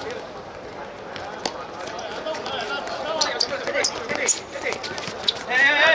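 Sneakers squeak on a hard court surface.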